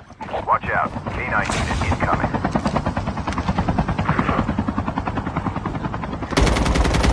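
A helicopter's rotor thuds steadily nearby.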